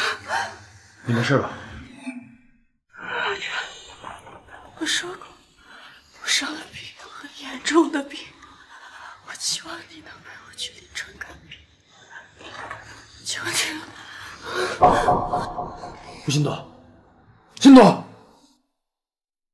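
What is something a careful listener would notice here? A young man asks with concern, close by.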